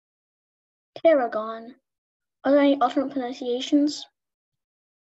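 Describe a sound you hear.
A boy speaks with animation over an online call.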